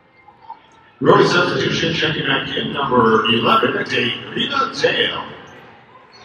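A crowd cheers loudly in a large echoing arena.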